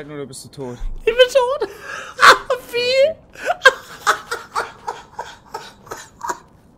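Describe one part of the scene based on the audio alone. A young man laughs loudly and wildly into a microphone.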